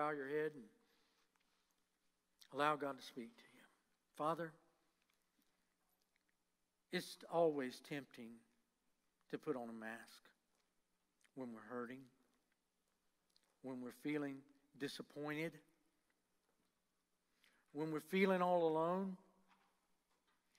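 An older man speaks slowly and calmly into a microphone, with long pauses.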